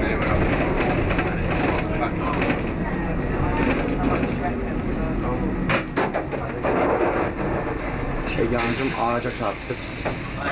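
Traffic passes outside on a busy road.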